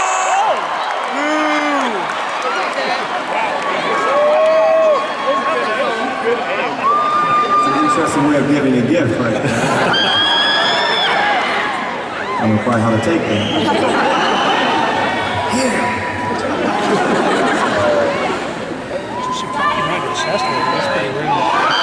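An electric guitar plays loudly through amplifiers in a large hall.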